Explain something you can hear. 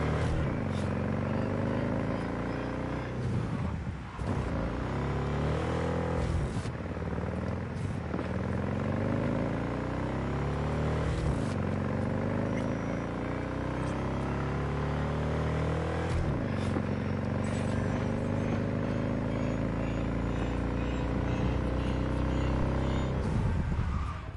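A motorcycle engine roars and climbs in pitch, dropping back with each gear change.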